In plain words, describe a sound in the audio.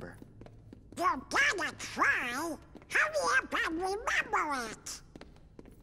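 A shrill, squawking cartoon voice speaks with animation.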